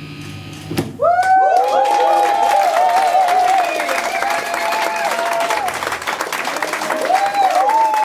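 An electric guitar plays a fast lead with bending notes.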